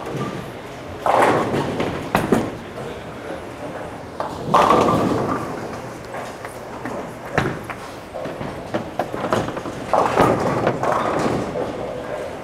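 Bowling pins crash and clatter, echoing through a large hall.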